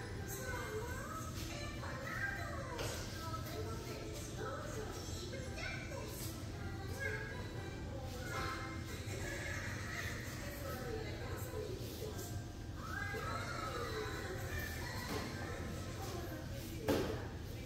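A mop swishes across a tiled floor.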